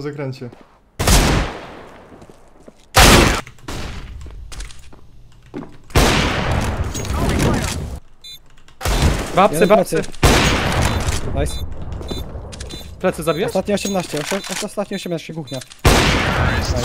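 A rifle fires loud, booming shots several times.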